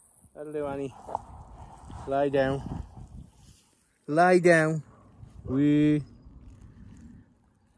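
A dog runs across grass nearby.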